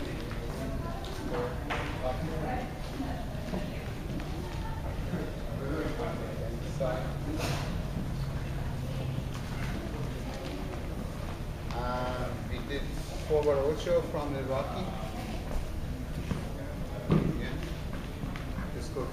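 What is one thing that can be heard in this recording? Adults talk quietly in a large room.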